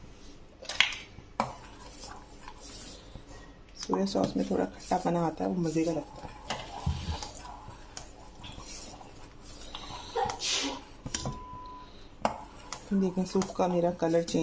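A spoon stirs and scrapes against a metal pot.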